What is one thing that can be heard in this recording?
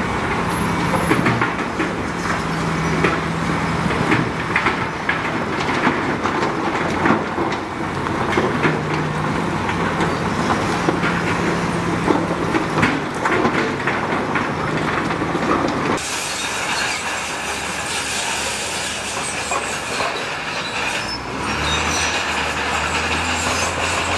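A bulldozer engine rumbles steadily close by.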